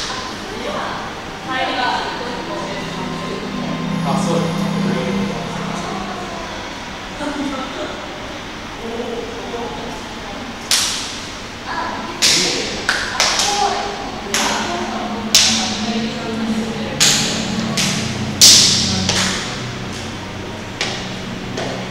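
Electronic tones and chimes play through loudspeakers and echo in a large hall.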